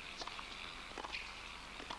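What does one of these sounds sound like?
A tennis ball is struck back with a racket.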